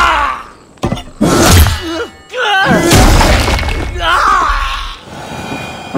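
A man cries out in pain.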